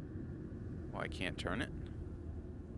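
A metal latch slides and clanks.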